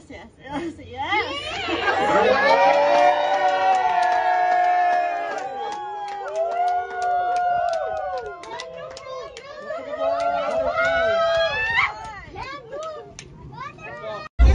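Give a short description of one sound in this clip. A crowd of women and men cheers and shrieks with excitement close by.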